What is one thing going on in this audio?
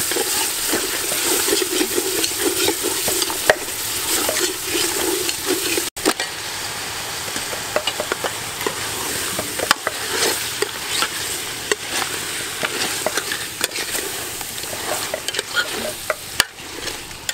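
A metal ladle scrapes and clinks against a pot.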